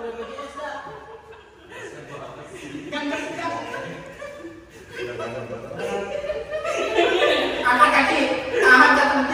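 Young men talk and laugh loudly nearby.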